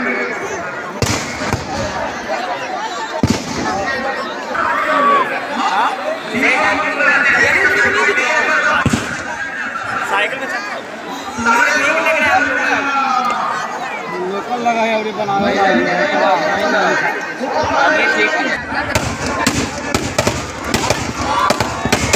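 Firecrackers pop and bang sharply.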